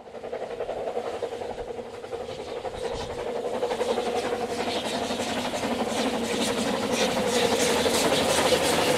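A steam locomotive chuffs rhythmically as it approaches, growing louder.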